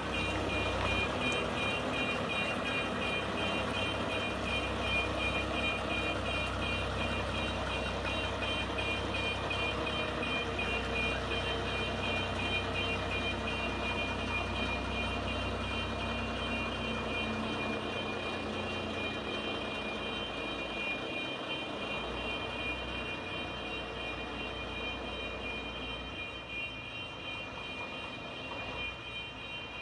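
A heavy truck engine rumbles steadily as the truck slowly reverses.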